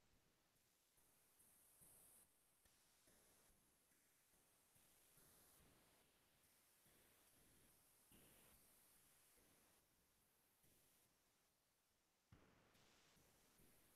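A pencil scratches softly across paper in short strokes.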